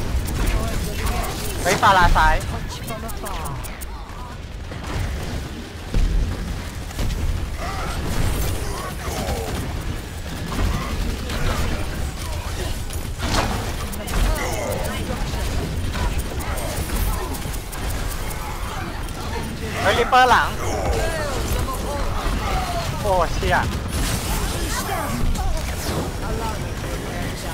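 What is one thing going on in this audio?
Game sound effects of abilities whoosh and chime.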